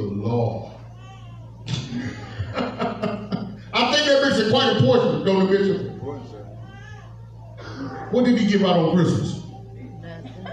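A man speaks into a microphone with animation, heard through loudspeakers in an echoing hall.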